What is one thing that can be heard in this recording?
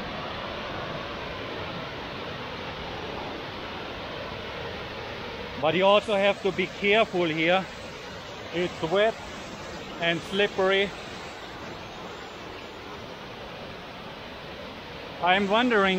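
A waterfall rushes and splashes steadily nearby.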